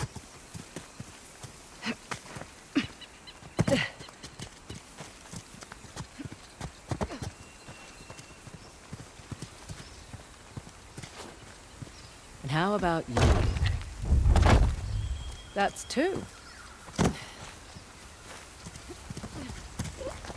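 Footsteps run through grass and over stone.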